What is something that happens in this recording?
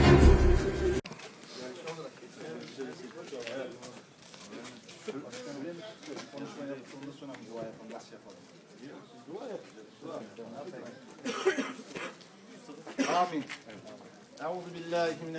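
Several men talk and chatter nearby outdoors.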